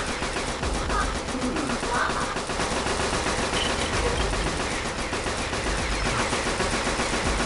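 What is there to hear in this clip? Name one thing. Blasters fire with sharp zapping shots.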